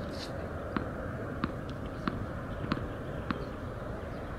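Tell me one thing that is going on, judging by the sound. A tennis ball bounces sharply on a hard court several times.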